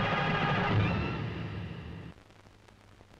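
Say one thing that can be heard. Upbeat music plays loudly, then fades out.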